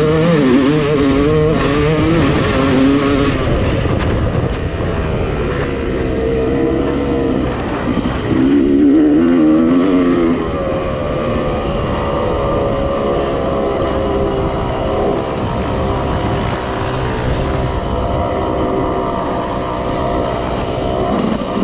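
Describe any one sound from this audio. A dirt bike engine revs and drones up close, rising and falling in pitch.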